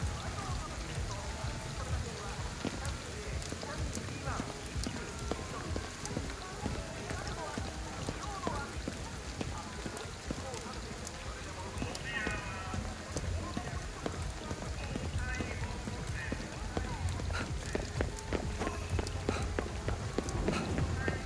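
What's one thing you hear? Footsteps splash through puddles.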